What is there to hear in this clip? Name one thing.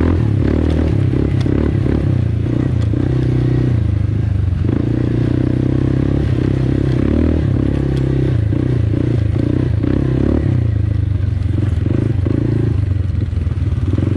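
A quad bike engine roars up close, its pitch rising and falling as the throttle changes.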